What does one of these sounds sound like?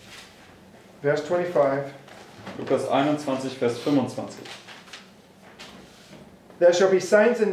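A middle-aged man reads aloud calmly.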